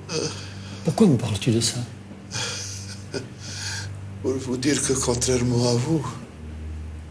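A middle-aged man speaks in a low, tense voice.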